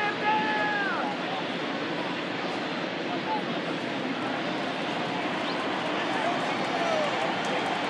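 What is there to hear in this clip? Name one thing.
A large stadium crowd murmurs and chatters steadily all around.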